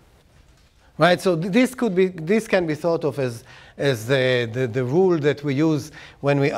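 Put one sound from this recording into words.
An older man lectures with animation, close to a microphone.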